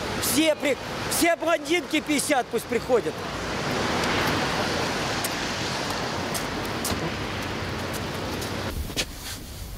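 Traffic hisses past on a wet street outdoors.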